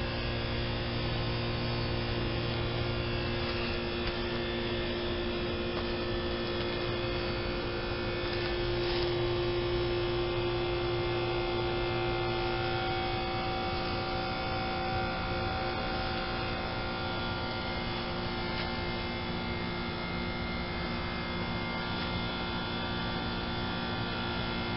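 An outdoor air conditioner fan hums and whirs steadily close by.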